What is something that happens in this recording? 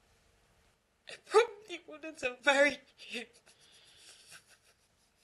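A young woman speaks tearfully, her voice breaking.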